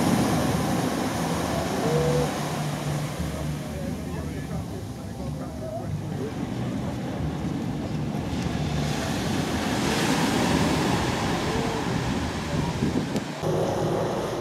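Small waves break and wash onto a sandy shore.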